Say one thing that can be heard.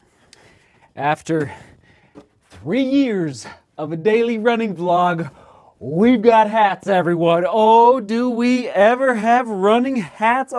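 A man talks with animation close by.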